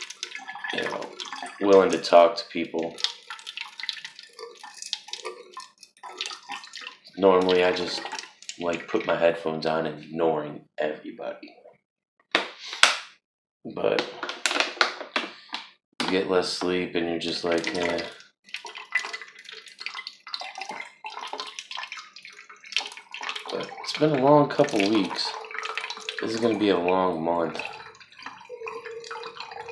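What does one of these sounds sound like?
Water pours in a thin stream into a can.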